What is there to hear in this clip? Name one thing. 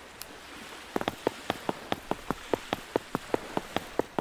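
Footsteps tap quickly on a wooden deck.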